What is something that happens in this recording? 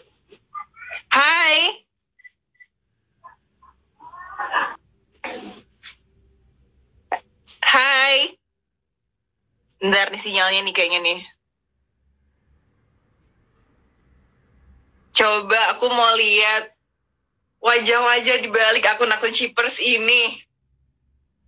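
A young woman talks and laughs cheerfully into a phone microphone, close by.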